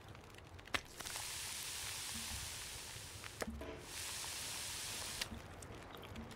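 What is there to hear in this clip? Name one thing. Food sizzles on a stove.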